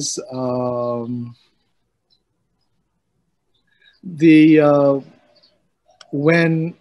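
An older man speaks calmly over an online call, in short phrases with pauses.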